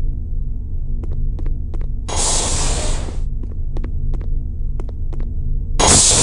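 Footsteps tap on a hard metal floor.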